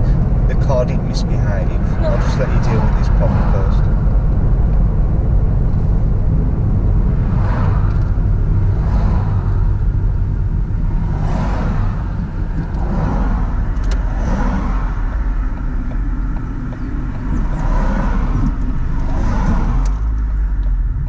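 A man talks calmly close by over the wind.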